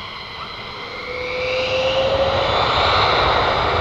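A jet engine roars louder and rises in pitch.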